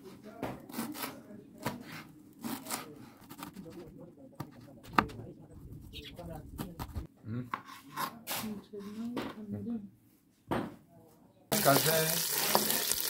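A wooden spoon scrapes and stirs thick food in a metal pot.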